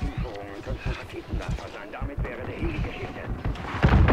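A magazine clicks as a rifle is reloaded.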